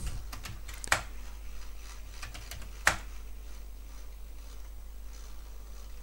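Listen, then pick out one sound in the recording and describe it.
Computer keys clack.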